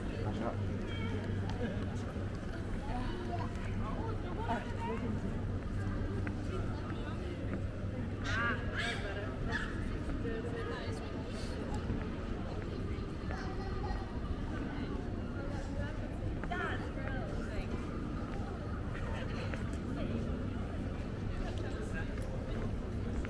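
Men and women chat in the distance in an open outdoor square.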